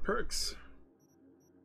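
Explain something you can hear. A man speaks briefly and close to a microphone.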